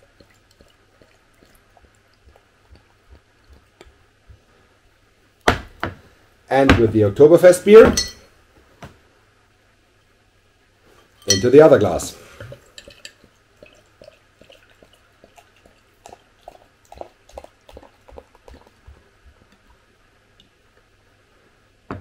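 Beer pours and fizzes into a glass.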